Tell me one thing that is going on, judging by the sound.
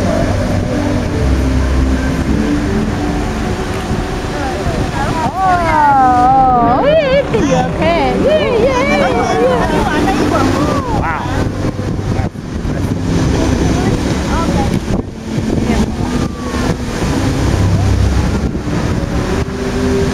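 Fountain jets rush and splash water into a pool.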